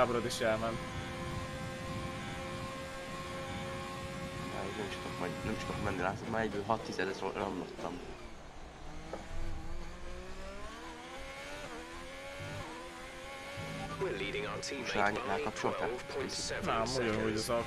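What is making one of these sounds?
A racing car engine whines and revs up and down through gear changes.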